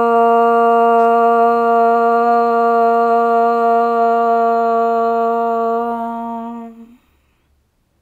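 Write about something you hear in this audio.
A young woman chants a long, steady tone close by.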